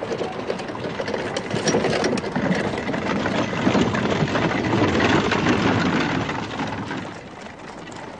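Carriage wheels rumble and rattle over the road.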